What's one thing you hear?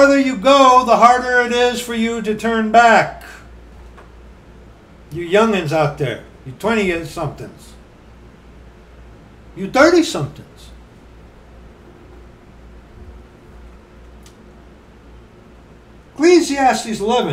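A middle-aged man speaks close by in short bursts, with pauses between.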